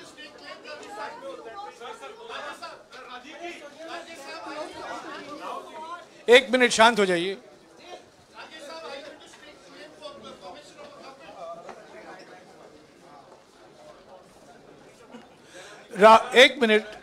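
A crowd of people murmurs and talks in the background.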